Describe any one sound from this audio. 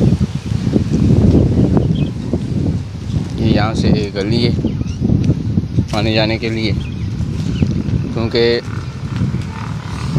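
Footsteps crunch on dry leaves and dirt.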